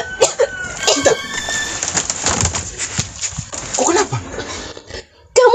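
A young woman cries out and speaks with emotion close by.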